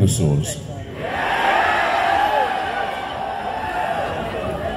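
An electric guitar plays loudly through amplifiers.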